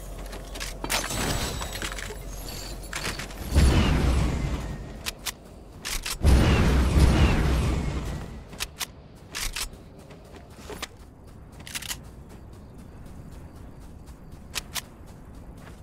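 Game gunshots crack in quick bursts.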